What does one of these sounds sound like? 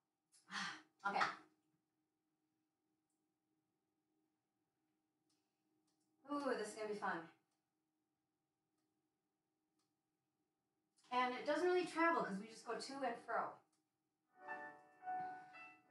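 A woman speaks calmly nearby in short phrases.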